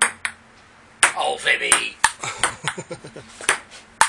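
A man laughs and talks loudly close by.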